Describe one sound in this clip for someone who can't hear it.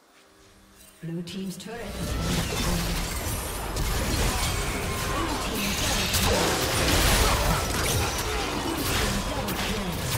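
Game spell effects crackle and blast loudly in a fight.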